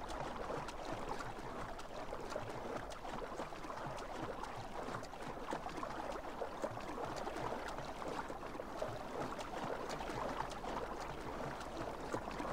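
Water splashes steadily as a swimmer strokes through a lake.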